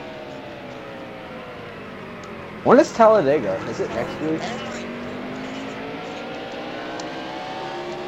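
A race car engine hums steadily, shifting in pitch.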